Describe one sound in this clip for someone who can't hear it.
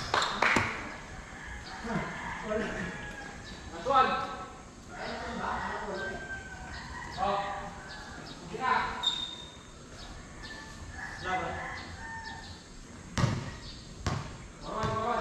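A basketball bounces with sharp thuds on the court.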